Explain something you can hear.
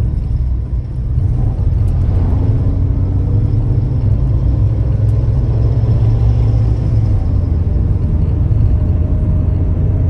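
A bus engine roars close by.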